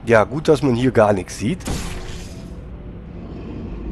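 A futuristic energy gun fires with a sharp zap.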